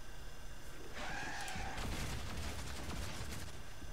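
A magical energy attack crackles and whooshes.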